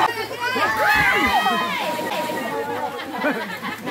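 A boy jumps into the water with a splash.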